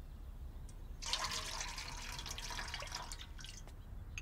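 Water runs from a tap into a metal pot.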